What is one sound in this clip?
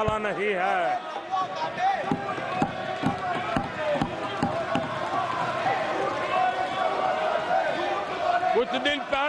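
A large crowd calls out and murmurs loudly.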